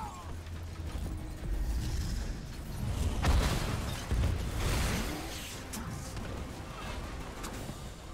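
Blades clash and blows land in a fight.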